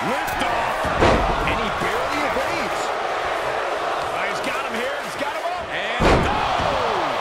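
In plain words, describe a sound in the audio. Bodies slam hard onto a wrestling ring mat.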